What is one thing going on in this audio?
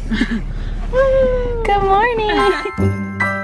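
A young woman greets in a lively, sing-song voice close by.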